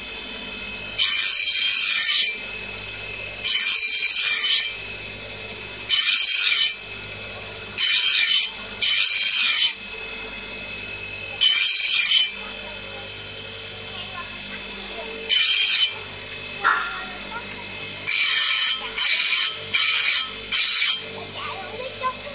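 A bench grinder shrieks in short bursts as metal is pressed against the wheel.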